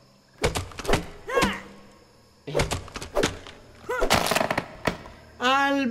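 An axe chops repeatedly at a thick stalk.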